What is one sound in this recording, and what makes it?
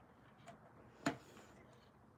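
A plastic object clicks down onto a hard surface.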